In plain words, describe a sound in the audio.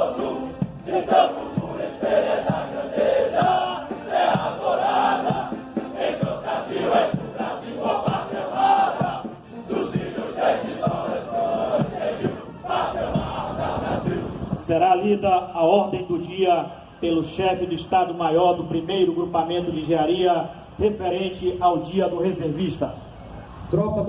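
A group of men sing loudly together outdoors.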